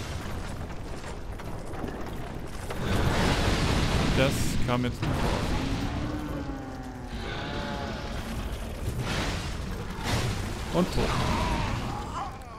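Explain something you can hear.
Heavy blows thud and clank.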